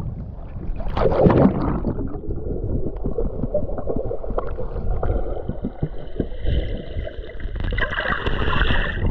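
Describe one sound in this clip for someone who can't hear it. Water bubbles and gurgles, heard muffled underwater.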